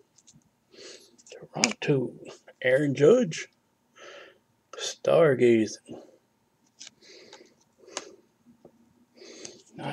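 Trading cards slide and rub against each other in the hands.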